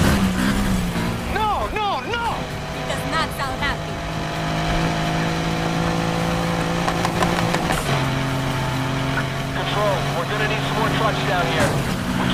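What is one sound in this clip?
A car engine roars steadily at high speed, shifting gear once.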